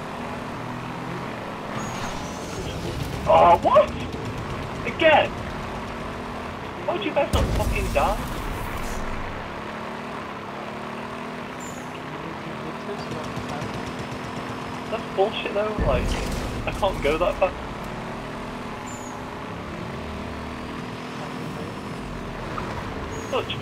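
A vehicle engine hums and drones steadily.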